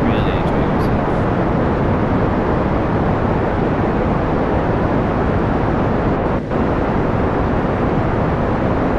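A rocket engine roars steadily.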